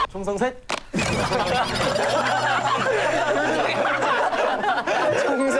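A young man laughs loudly in a giggle.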